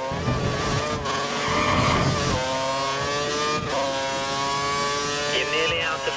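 A racing car engine whines at high revs, shifting gears.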